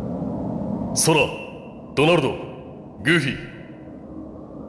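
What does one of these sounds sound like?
A young man calls out short words.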